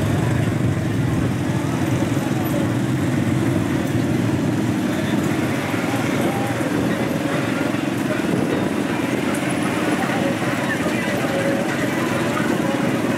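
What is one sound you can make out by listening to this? Engines of several all-terrain vehicles rumble steadily as they roll slowly past, close by, outdoors.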